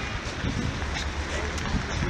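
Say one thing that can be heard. Pigeons flap their wings close by.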